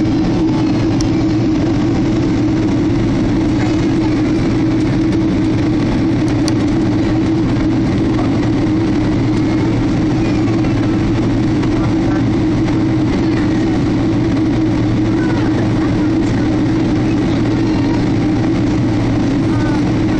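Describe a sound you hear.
A jet engine drones steadily inside an airplane cabin.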